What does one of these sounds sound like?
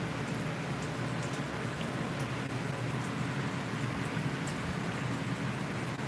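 Leafy plants rustle in the wind.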